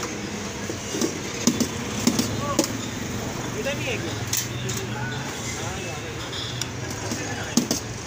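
Metal utensils clink and scrape against metal pans.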